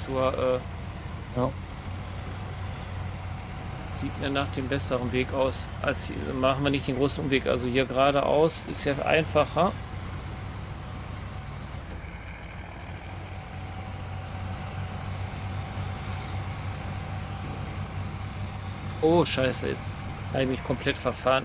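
A heavy truck engine rumbles steadily as the truck crawls along a rough track.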